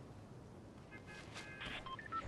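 A short electronic chime rings out.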